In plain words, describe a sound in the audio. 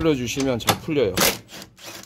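A cordless driver whirs as it turns a bolt.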